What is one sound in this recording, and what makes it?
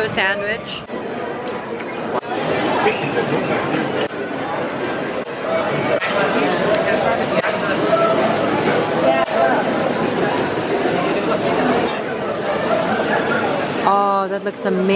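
Meat sizzles on a hot grill.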